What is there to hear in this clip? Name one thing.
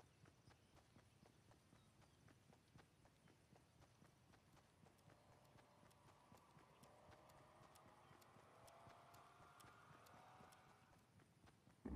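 Footsteps run quickly and steadily in a game.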